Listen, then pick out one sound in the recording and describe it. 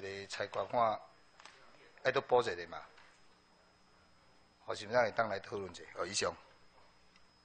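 A middle-aged man speaks firmly into a microphone in a large room.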